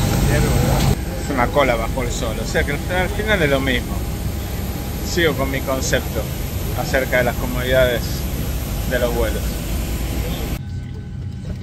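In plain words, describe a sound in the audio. A middle-aged man talks close to the microphone, outdoors.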